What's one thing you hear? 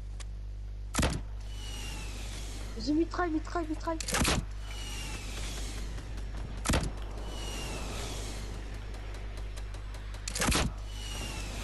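A rocket launcher fires with sharp blasts, several times.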